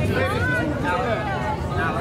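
A woman calls out cheerfully nearby.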